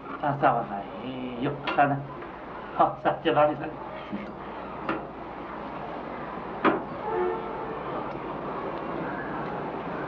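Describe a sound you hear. Spoons clink against plates.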